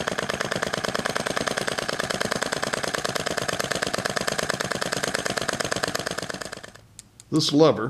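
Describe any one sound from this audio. A small engine runs with a fast, even chugging.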